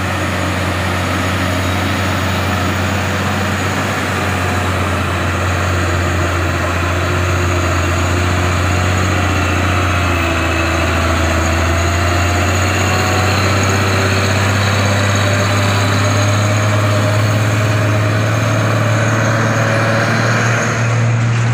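A heavy truck's diesel engine rumbles loudly as it drives past close by.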